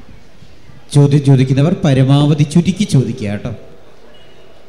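A man speaks into a microphone with animation, heard through loudspeakers.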